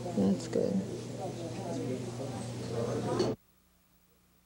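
A woman speaks calmly nearby.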